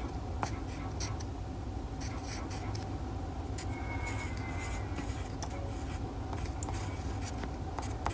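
A pencil scratches and taps on paper.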